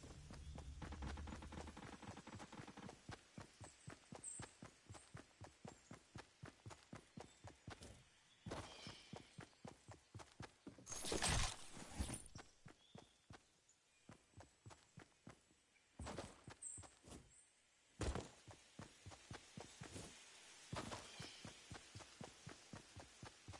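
Footsteps run quickly over grass in a steady rhythm.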